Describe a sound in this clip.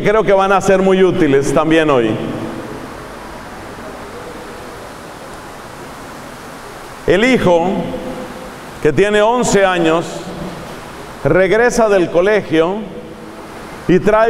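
A middle-aged man preaches with animation through a microphone, his voice echoing in a large hall.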